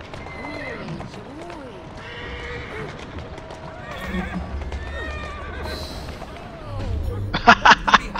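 A horse-drawn carriage rattles over cobblestones.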